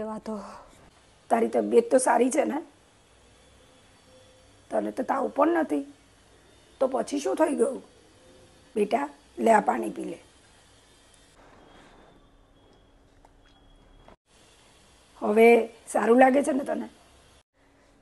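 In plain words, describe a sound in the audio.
A young woman talks with animation close to a clip-on microphone, in short bursts.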